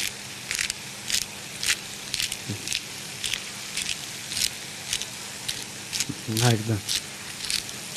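A spice shaker rattles in quick, even shakes.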